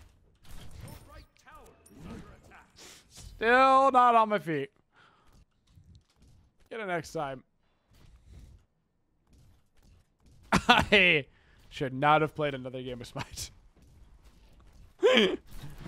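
A man laughs through a headset microphone.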